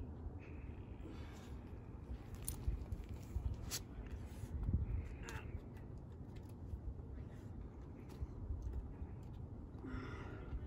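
A climber's hands and shoes scrape and tap against rock.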